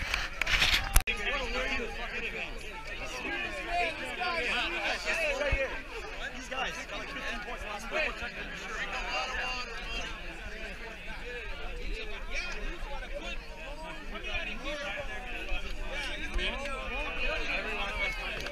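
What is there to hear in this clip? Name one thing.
Young men talk and shout excitedly close by.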